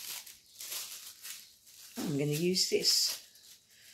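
Thin paper crinkles and rustles in hands.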